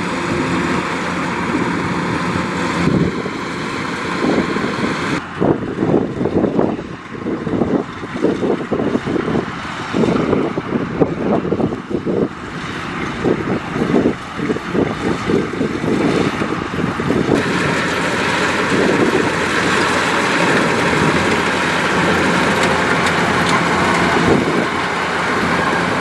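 A combine harvester cuts and threshes rice stalks with a clattering whir.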